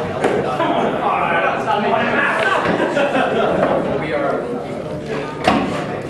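Pool balls knock together and roll on the table.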